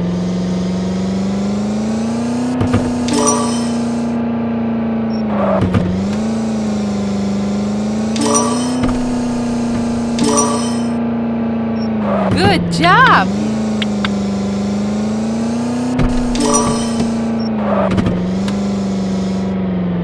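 A car engine hums steadily, rising and dipping slightly in pitch.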